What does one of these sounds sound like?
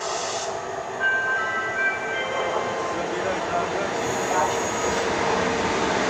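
Train brakes squeal in high tones.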